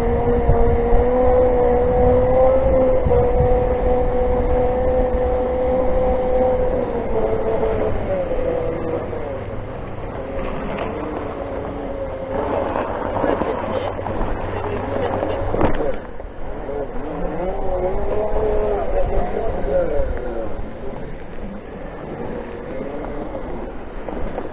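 An electric scooter's motor whines steadily, then rises and falls in pitch.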